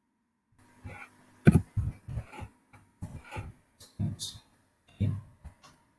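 Keyboard keys click as someone types.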